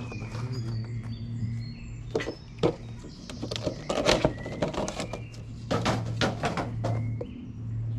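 Paper and plastic packaging rustle and clatter as they are handled.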